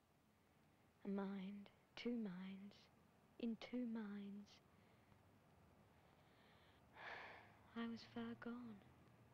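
A child sings softly nearby.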